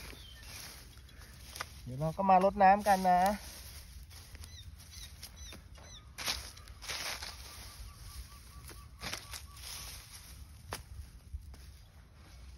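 Hands scrape and rustle dry grass and soil.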